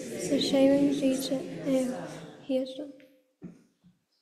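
A boy reads aloud through a microphone in an echoing room.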